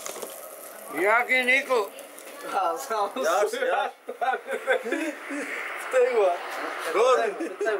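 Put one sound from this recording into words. A young man laughs and talks close by.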